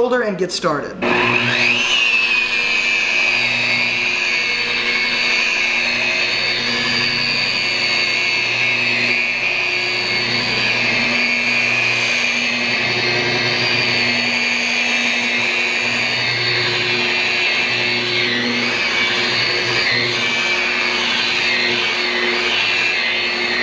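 A power polisher whirs steadily with a high whine.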